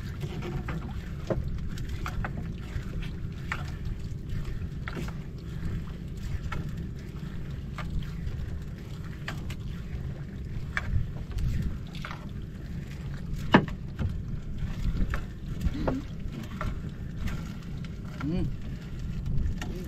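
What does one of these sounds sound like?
A fishing net rustles and scrapes as it is pulled by hand.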